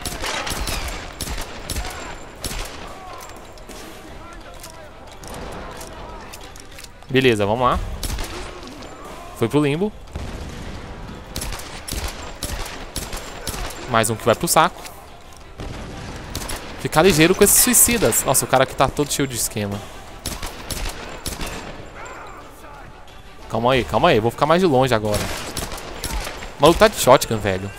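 Pistol shots ring out one after another.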